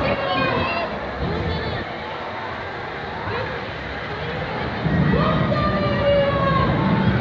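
A fairground ride's machinery whirs steadily as it swings.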